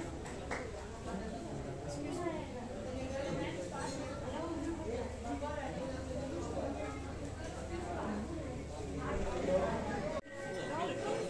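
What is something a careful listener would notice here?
A crowd of people chatter nearby in the open air.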